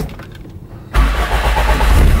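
A car engine starts up and runs with a low rumble.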